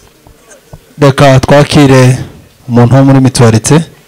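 A second man speaks loudly into a microphone through a loudspeaker.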